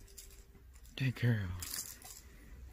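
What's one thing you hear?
A cat rustles a blanket while playing.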